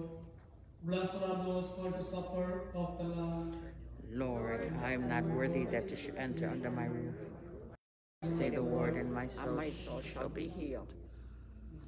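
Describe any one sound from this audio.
A man chants in a steady sung voice through a microphone.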